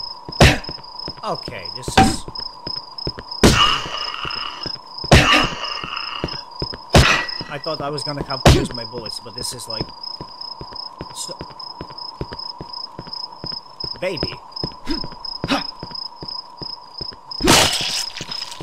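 Heavy blows thud and crack repeatedly.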